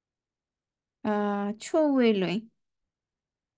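A woman pronounces syllables clearly and slowly over an online call.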